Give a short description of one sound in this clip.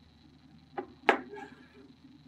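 A hard object is set down on a table with a knock.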